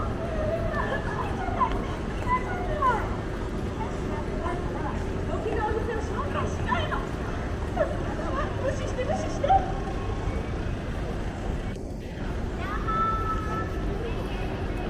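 Footsteps shuffle on pavement.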